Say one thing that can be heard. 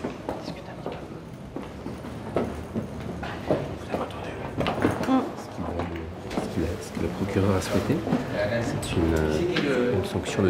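A young woman sniffles and sobs.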